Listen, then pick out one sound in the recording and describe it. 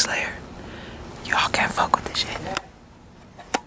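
A young woman whispers close by.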